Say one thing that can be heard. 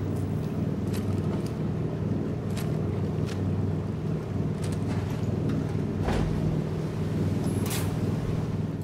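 Heavy metal footsteps clank now and then.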